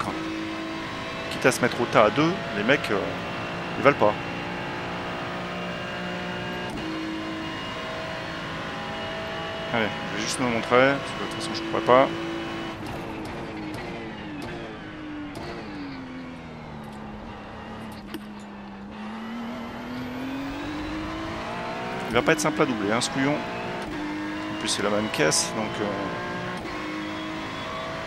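A racing car engine roars steadily, its pitch rising and falling as it shifts gears.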